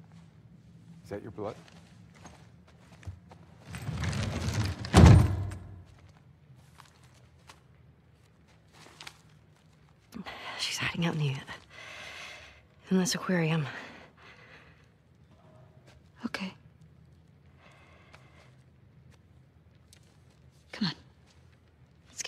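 A young woman speaks softly in reply.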